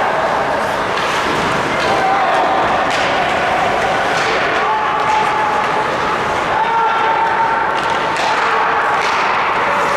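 Spectators murmur and shout in a large echoing arena.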